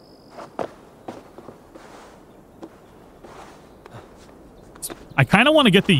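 Hands and boots knock against wooden beams during a climb.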